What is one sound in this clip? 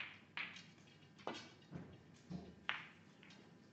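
Snooker balls clack sharply against each other.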